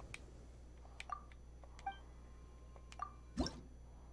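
Bright magical chimes ring out in short bursts.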